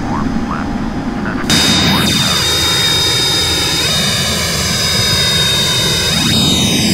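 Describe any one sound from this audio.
Jet engines roar with a steady high whine.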